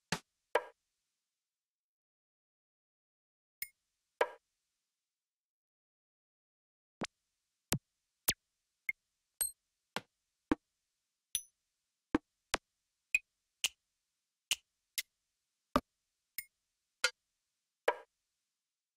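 Short single percussion hits play one at a time, with pauses between them.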